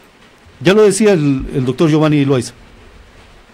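A middle-aged man speaks calmly into a microphone, heard over an online call.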